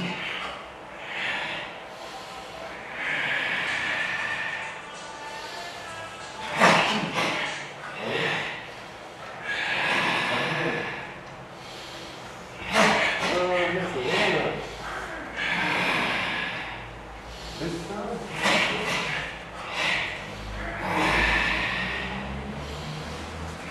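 Men exhale sharply and loudly in unison, again and again.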